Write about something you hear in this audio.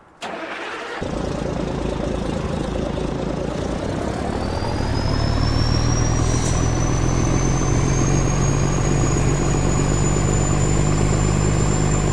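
A truck engine rumbles steadily up close.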